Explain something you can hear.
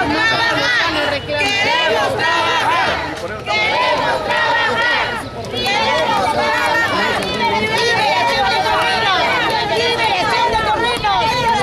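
A crowd of protesters chants loudly outdoors.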